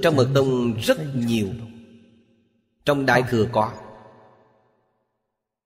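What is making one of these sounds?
An elderly man speaks calmly and warmly into a microphone.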